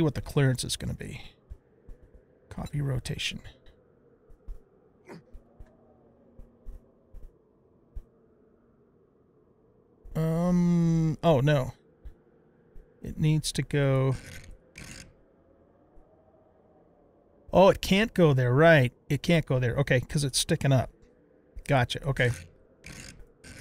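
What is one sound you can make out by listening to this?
A man talks casually and close to a microphone, with pauses.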